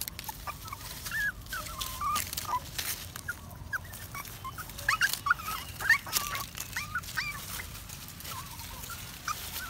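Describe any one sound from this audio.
Dry leaves rustle as puppies move.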